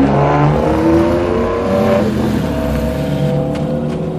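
A second sports car engine rumbles and revs as the car drives past.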